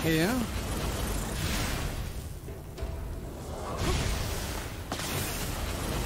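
A roaring burst of fire whooshes and crackles.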